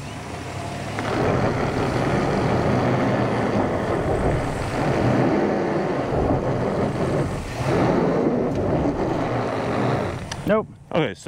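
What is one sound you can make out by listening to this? A truck engine roars as its tyres spin on gravel.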